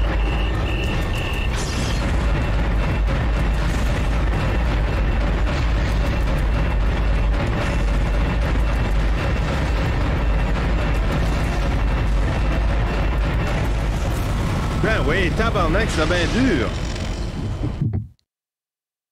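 Heavy guns fire rapidly over a deep, steady rumble.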